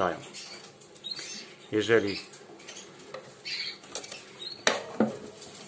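Small birds chirp and tweet close by.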